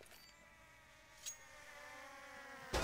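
A drone whirs closer overhead.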